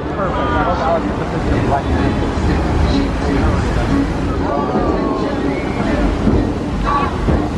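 Fountain jets spray and splash into the water with a steady rushing roar.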